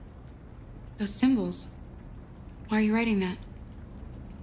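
A young woman speaks softly, close by.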